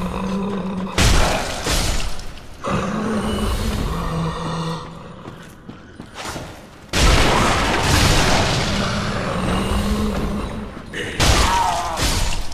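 A sword swings and strikes with heavy metallic hits.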